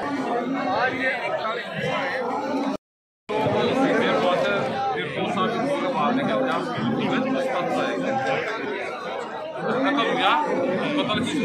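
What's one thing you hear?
A crowd of men talks and shouts all around, close by.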